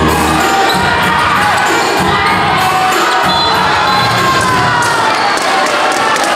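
A large crowd cheers and shouts in an echoing hall.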